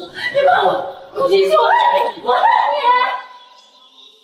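A young woman shouts angrily up close.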